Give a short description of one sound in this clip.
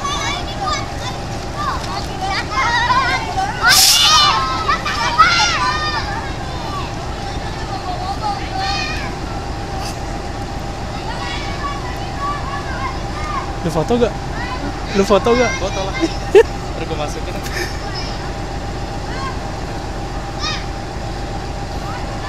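A diesel locomotive's engine rumbles steadily close by.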